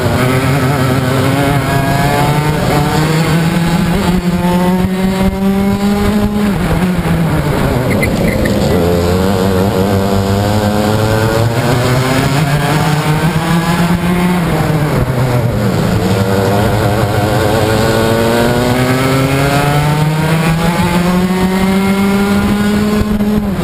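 A kart engine buzzes loudly and close, rising and falling in pitch as it speeds up and slows down.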